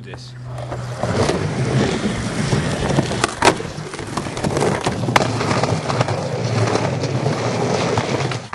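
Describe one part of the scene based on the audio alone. Skateboard wheels roll loudly over rough pavement.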